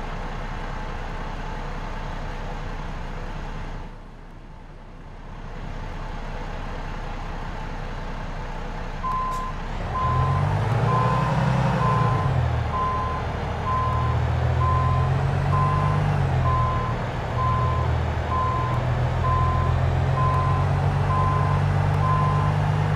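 A truck engine rumbles and revs.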